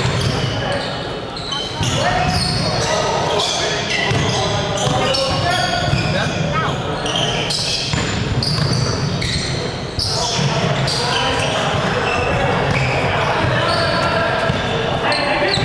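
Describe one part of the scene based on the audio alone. Young men shout and call out to each other across an echoing gym.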